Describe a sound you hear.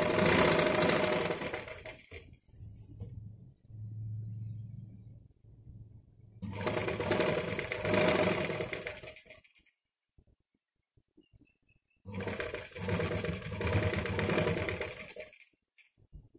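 A sewing machine whirs in bursts as it stitches.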